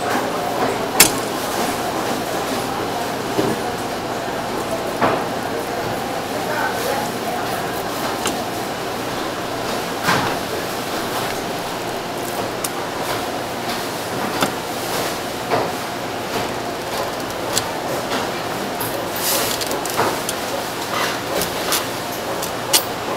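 A knife clicks and taps against a cutting board.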